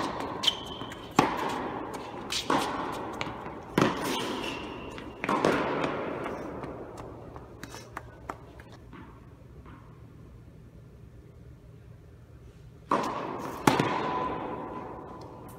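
Tennis balls are struck with rackets, echoing loudly in a large hall.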